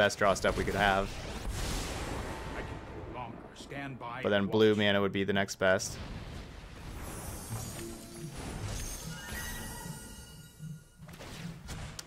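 Game effects whoosh and chime.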